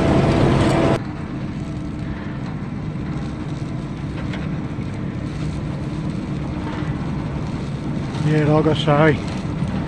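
A harvester's engine drones steadily from a distance.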